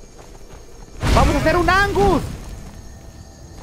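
A burst of flames whooshes and crackles.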